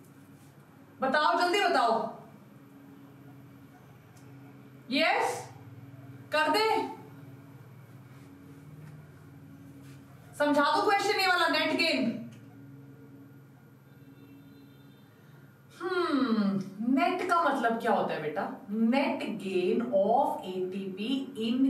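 A woman speaks with animation into a close microphone, in bursts with pauses.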